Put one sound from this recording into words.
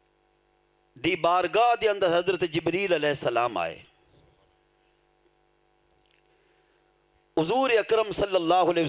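A middle-aged man chants melodically into a microphone, amplified through a loudspeaker.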